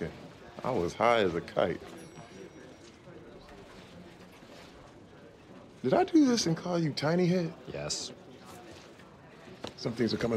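A middle-aged man speaks loudly and with animation, close by.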